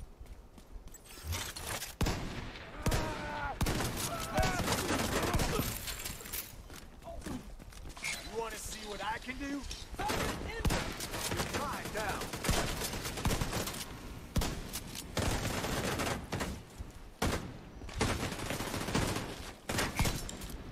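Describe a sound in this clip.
Rapid gunfire rattles in bursts.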